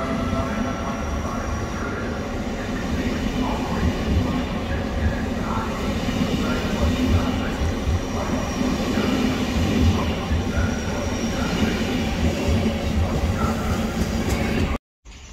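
A passenger train rolls past close by with a steady low rumble.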